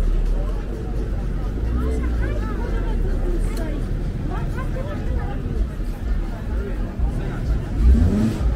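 A crowd of people chatter nearby outdoors.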